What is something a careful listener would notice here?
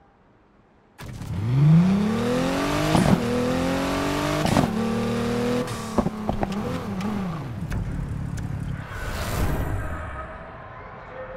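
A car engine revs hard and climbs through the gears.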